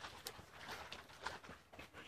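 A dog rustles through tall grass.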